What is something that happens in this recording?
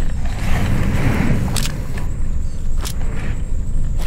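A handgun clicks as it is handled.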